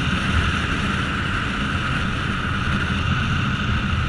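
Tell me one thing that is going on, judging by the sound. A truck rumbles by close alongside.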